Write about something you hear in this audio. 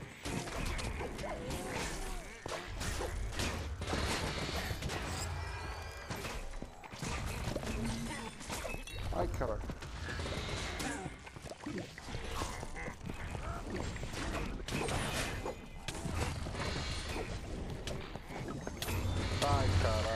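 Game combat sounds of swords clashing and magic blasts play throughout.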